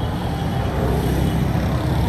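Vans drive along a street.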